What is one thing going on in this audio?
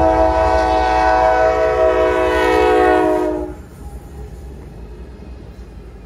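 A locomotive engine roars as it passes close by.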